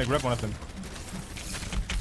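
A heavy gun fires rapid shots.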